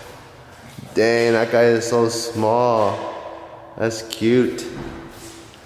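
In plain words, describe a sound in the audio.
A man speaks with animation nearby in an echoing empty room.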